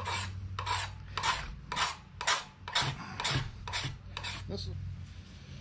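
A hand tool scrapes along a wooden ax handle in repeated strokes.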